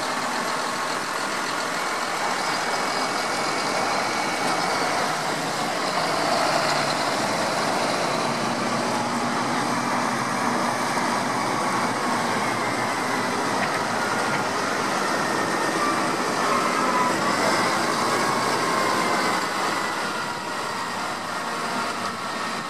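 Tractor tyres hiss on a wet road.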